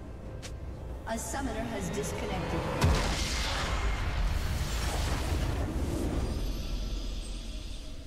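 Game spell effects crash and whoosh in a burst of noise.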